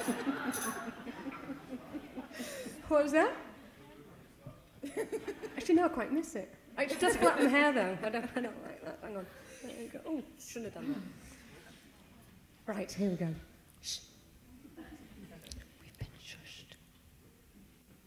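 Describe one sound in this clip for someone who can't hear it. A woman speaks into a microphone in a relaxed, chatty way.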